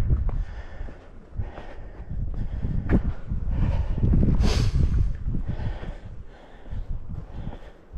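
Wind gusts loudly across an open outdoor space, buffeting in rough bursts.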